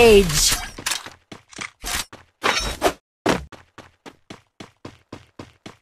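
Footsteps run over ground.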